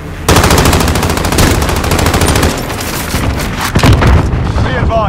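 Pistols fire rapid shots.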